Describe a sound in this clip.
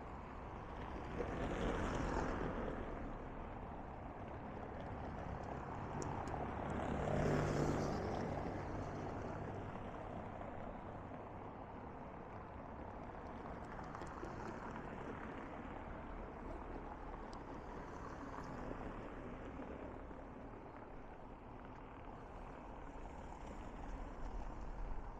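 Cars drive past on a nearby road, each one swelling and then fading away.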